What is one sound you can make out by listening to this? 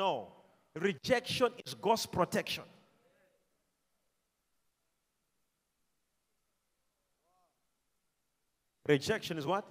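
A man preaches with animation through a microphone in a large echoing hall, pausing between phrases.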